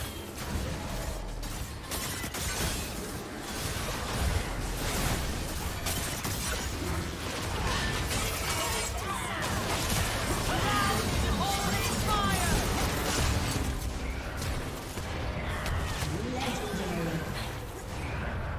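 Game spell effects crackle and burst in a fight.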